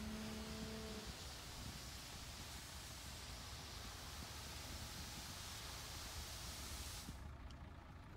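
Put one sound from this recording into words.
Gravel pours and rumbles out of a tipping truck bed.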